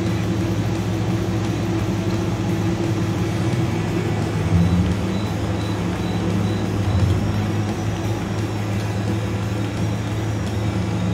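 A tractor engine rumbles steadily as it drives along.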